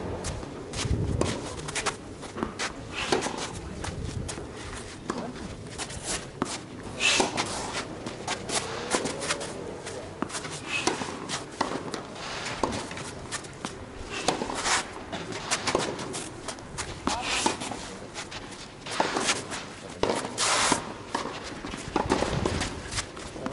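Tennis balls are struck with rackets in a steady rally.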